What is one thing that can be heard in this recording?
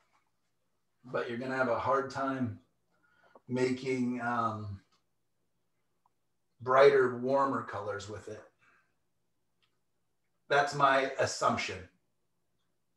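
A man speaks calmly close to a microphone, in short phrases with pauses.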